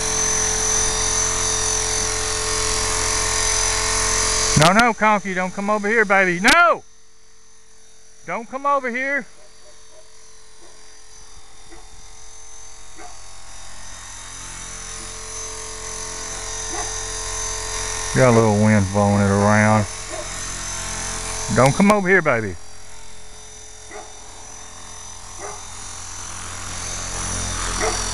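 A small model helicopter's motor whines steadily.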